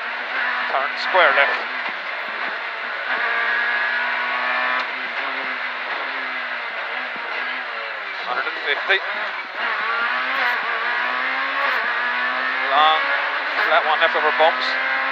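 A rally car engine roars loudly from inside the car, its pitch rising and dropping again and again.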